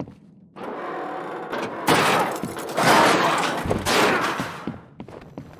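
A metal grate scrapes and clangs as it is pried open.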